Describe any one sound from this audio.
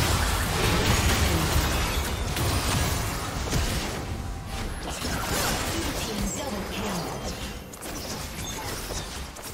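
Magic blasts and impacts crackle and boom in a fast fight.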